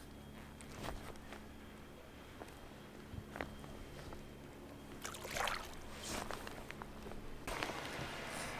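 Water laps and splashes gently nearby.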